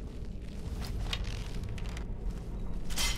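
A bowstring creaks as a bow is drawn.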